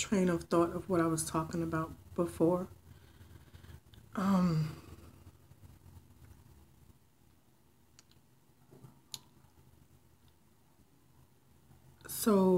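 A woman speaks emotionally, close to the microphone, with long pauses.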